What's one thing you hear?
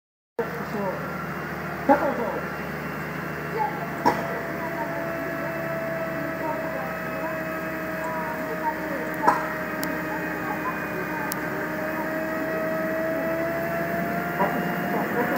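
A snow groomer's engine rumbles steadily close by.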